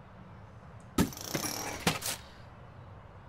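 A game plays a short burst of sound effects as something is built.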